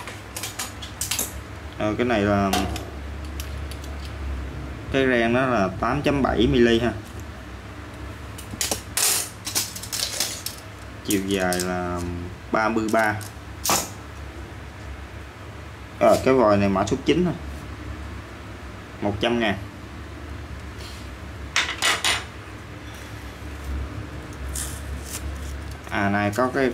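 Metal tools clink and tap as they are handled.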